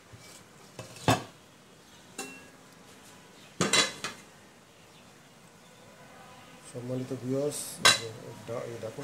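A metal lid clanks against a pot.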